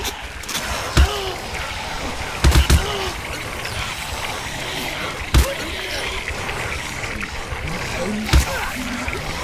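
Gunshots bang sharply a few times.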